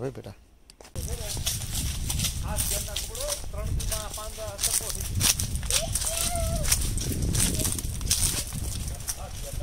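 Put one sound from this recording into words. Dry leaves crunch underfoot as people walk.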